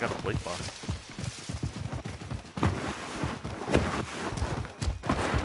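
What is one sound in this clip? Quick footsteps run through rustling grass and leaves.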